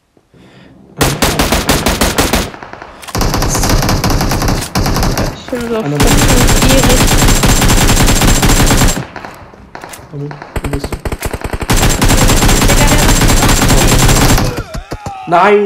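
Rapid gunfire rattles in fast bursts.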